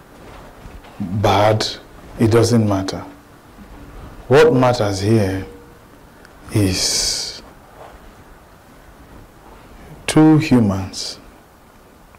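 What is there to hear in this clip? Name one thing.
A man speaks with animation in short phrases.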